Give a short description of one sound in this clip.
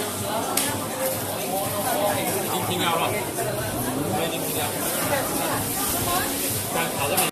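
A crowd of men and women chatter loudly nearby, echoing in a busy indoor hall.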